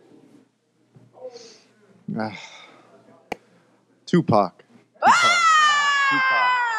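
A man speaks through a microphone, in short bursts with pauses, then draws out a long word.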